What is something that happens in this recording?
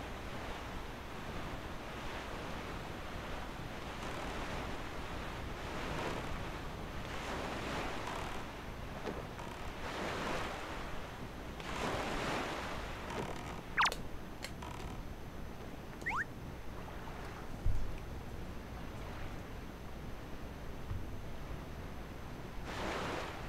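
A small boat rushes across open water with waves splashing in surges.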